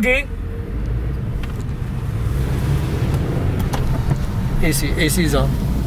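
A car engine hums steadily, heard from inside the car as it drives.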